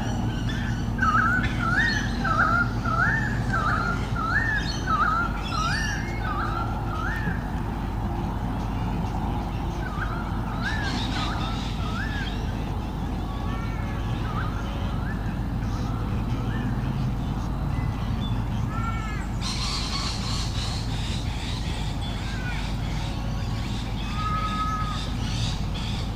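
A young bird of prey calls repeatedly from its nest with high, rising cries.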